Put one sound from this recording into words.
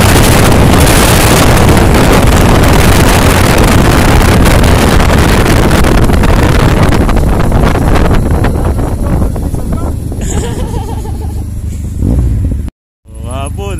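Wind roars loudly against a microphone on a fast-moving motorcycle.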